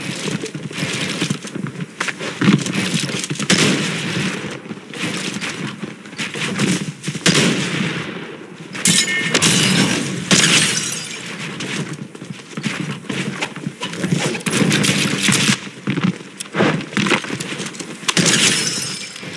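Wooden building pieces clatter and snap into place in quick succession.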